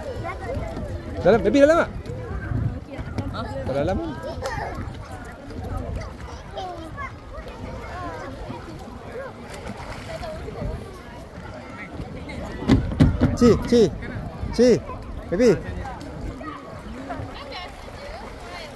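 Water splashes as children wade and paddle.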